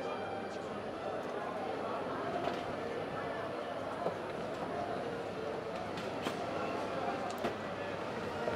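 A crowd of people murmurs and walks outdoors.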